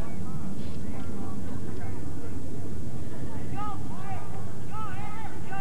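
Players shout faintly across an open field outdoors.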